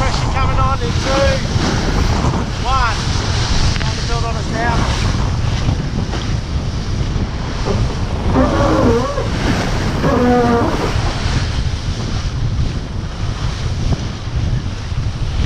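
Wind buffets loudly throughout, outdoors.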